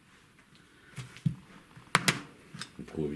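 A plastic stamp block knocks and clicks against a table.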